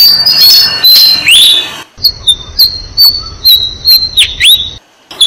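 A small bird chirps sharply and repeatedly, close by.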